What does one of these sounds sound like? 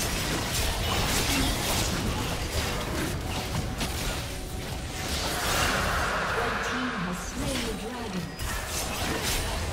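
Magic spells whoosh and crackle in a fast, busy fight.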